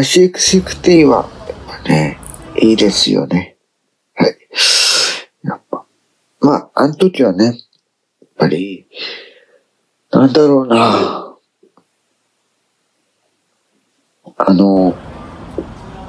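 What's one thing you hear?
A man speaks calmly and sleepily, close to the microphone, in short bursts with pauses.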